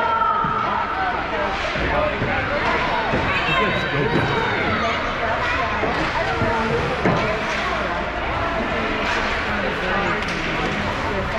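Young children shout and call out across the rink.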